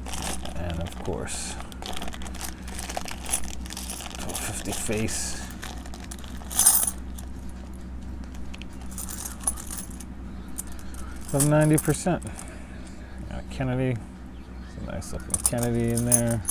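Metal coins clink and jingle against each other.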